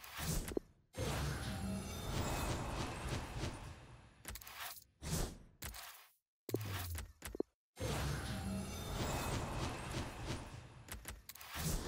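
Game menu sounds whoosh and chime as card packs open.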